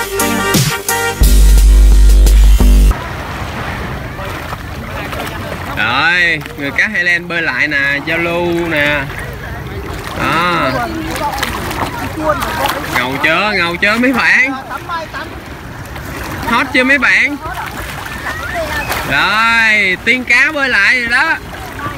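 Water splashes as a swimmer kicks and strokes nearby.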